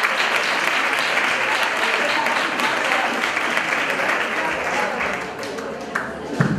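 An audience claps and applauds in a hall.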